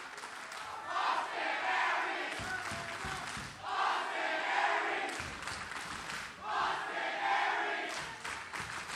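A large crowd chants loudly in rhythmic bursts in a big echoing hall.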